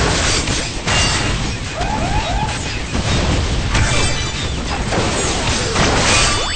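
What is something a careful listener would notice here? Laser beams zap and buzz.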